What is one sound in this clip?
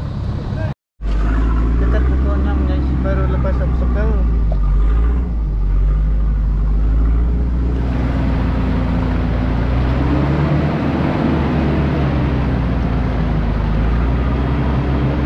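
An engine rumbles steadily from inside a vehicle.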